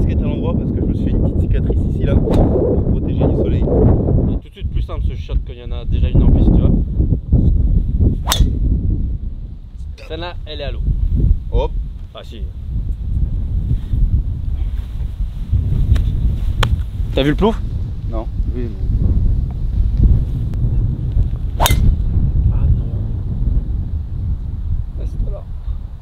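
Wind rumbles across a microphone.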